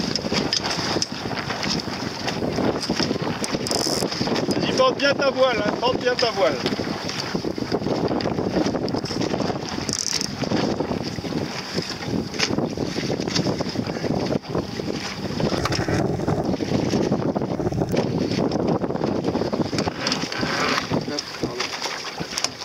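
Water laps and splashes against a small boat's hull.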